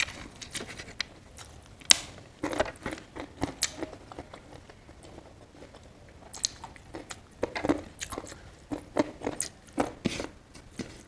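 Fingers squish and mix rice and food on a plate close up.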